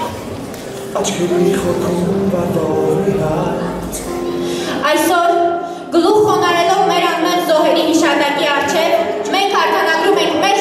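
A young woman speaks clearly through a microphone and loudspeakers in a large echoing hall.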